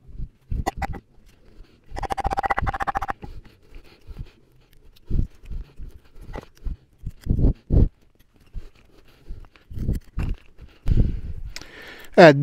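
A knife blade whittles and scrapes green wood with short, dry strokes.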